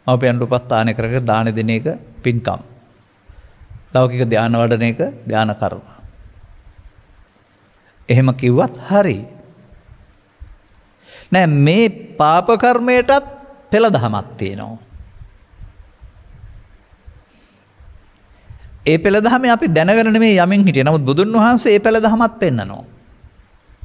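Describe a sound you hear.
An elderly man speaks calmly into a microphone, pausing between phrases.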